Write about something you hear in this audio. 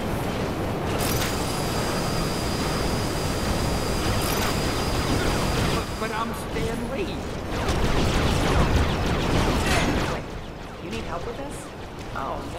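Laser blasts zap and crackle rapidly.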